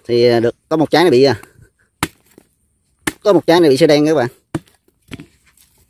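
A knife chops into a large fruit with dull thuds.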